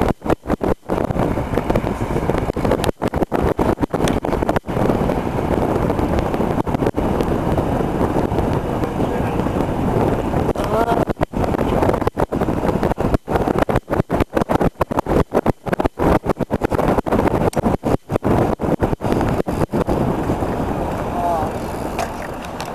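Bicycle tyres roll steadily over pavement.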